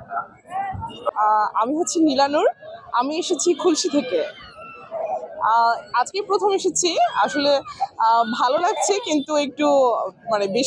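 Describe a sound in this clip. A young woman speaks with animation into a microphone close by.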